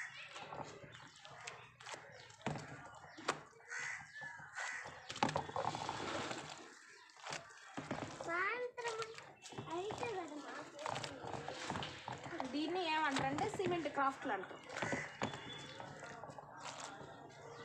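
A hand squelches and sloshes through wet cement in a bowl.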